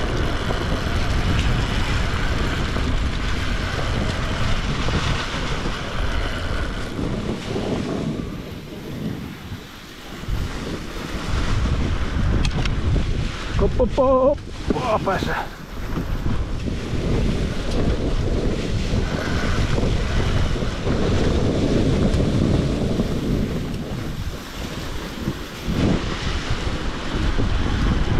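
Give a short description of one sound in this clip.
A dirt bike engine close by runs and revs unevenly.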